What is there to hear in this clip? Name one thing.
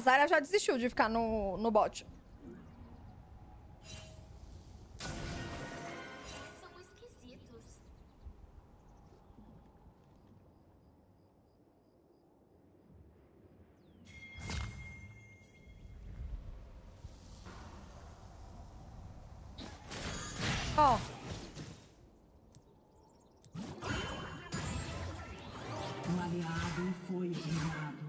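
Game spell effects whoosh and clash.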